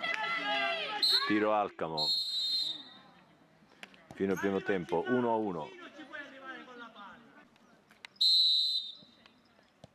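A referee's whistle blows sharply several times.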